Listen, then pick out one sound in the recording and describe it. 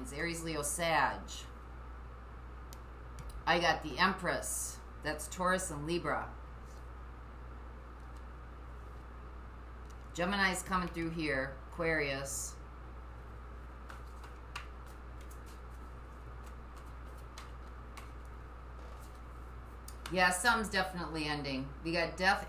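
A middle-aged woman speaks calmly and close by, in short phrases with pauses.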